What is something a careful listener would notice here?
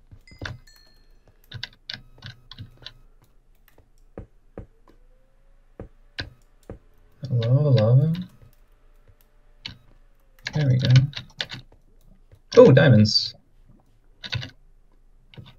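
Footsteps tap lightly on stone.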